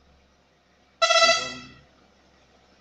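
A lorry horn blares once.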